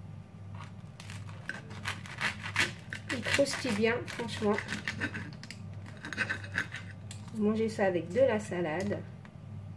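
A knife saws through crusty toasted bread.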